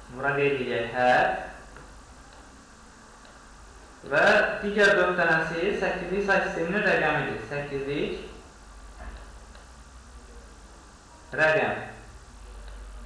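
A man speaks calmly into a microphone, explaining.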